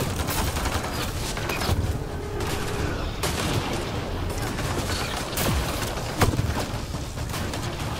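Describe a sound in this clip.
Heavy armoured footsteps thud on rocky ground.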